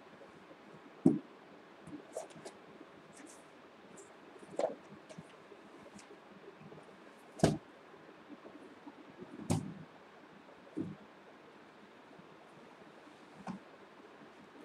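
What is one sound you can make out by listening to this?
Objects knock and rustle close by.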